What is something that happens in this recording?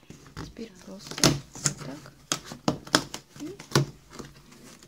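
Fingers tap and knock on stiff cardboard close by.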